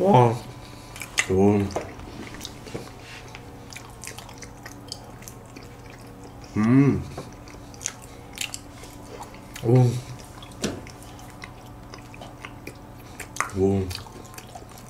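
Young men hum and murmur with pleasure while eating.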